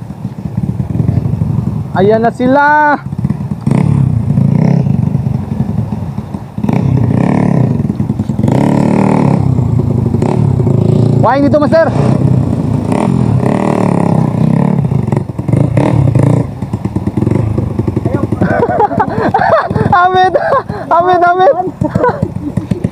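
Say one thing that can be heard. A dirt bike engine revs loudly, rising and falling in pitch.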